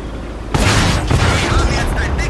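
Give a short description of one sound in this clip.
A shell explodes nearby.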